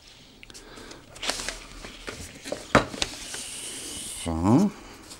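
Wrapping paper crinkles and rustles under hands.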